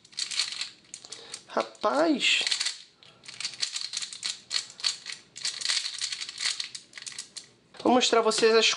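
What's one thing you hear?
A plastic puzzle cube clicks and clatters as it is turned quickly.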